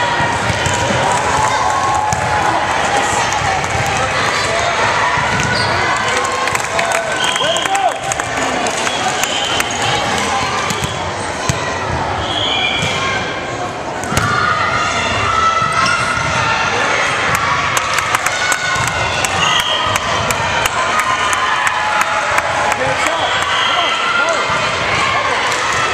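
Girls shout and call out across a large echoing gym.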